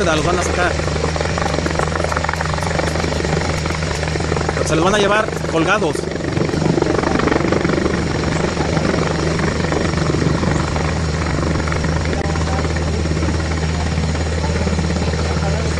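A helicopter's rotor thumps steadily as it hovers nearby.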